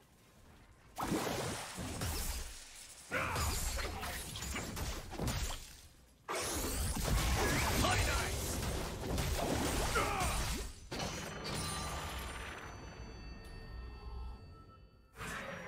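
Fantasy battle sound effects whoosh, clash and crackle.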